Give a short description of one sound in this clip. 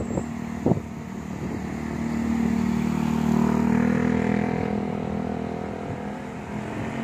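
A car drives past close by on a street.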